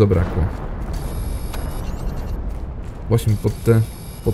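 A laser tool hums with a thin electronic buzz.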